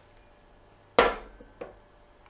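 A glass bottle knocks down onto a hard table.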